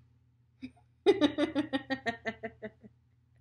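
A young woman laughs heartily close by.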